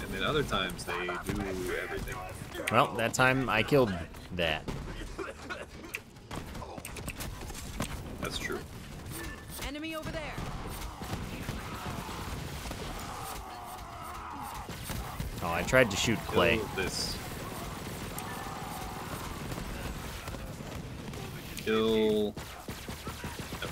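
Guns fire in rapid bursts with loud blasts and explosions.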